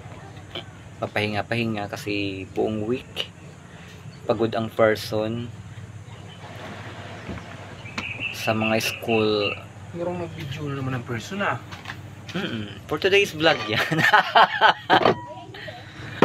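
A young man talks calmly close by.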